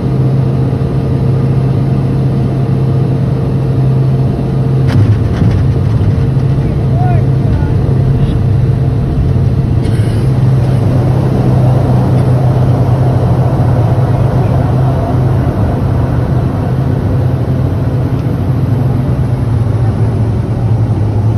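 Turboprop engines drone with a steady low hum, heard from inside the cabin of a taxiing aircraft.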